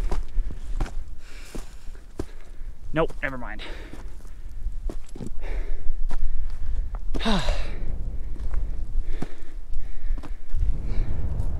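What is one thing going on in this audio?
Footsteps crunch on loose rock.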